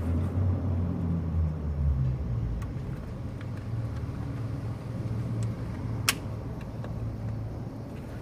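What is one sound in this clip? An engine idles nearby with a low, steady rumble.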